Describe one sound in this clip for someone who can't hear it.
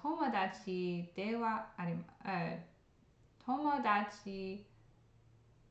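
A young woman speaks calmly and close to a microphone, in short phrases with pauses.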